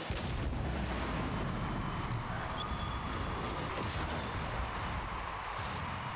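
A crowd in a game arena cheers loudly.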